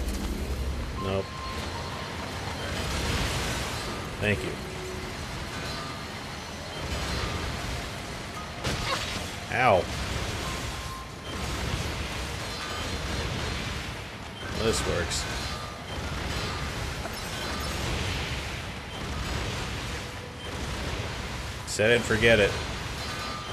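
Explosions boom and crackle in bursts.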